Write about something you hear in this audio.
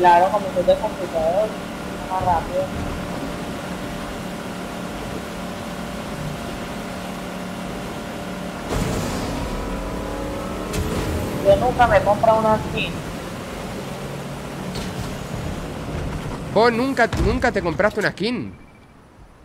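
A boat engine hums steadily while moving over water.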